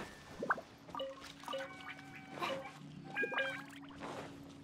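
Bright chimes ring out in short tones.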